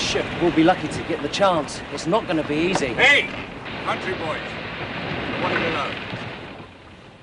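A young man speaks intently, close by.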